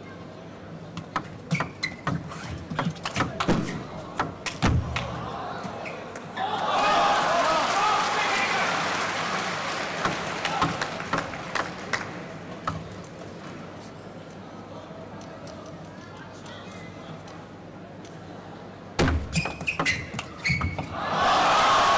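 A table tennis ball clicks back and forth off paddles and the table in quick rallies.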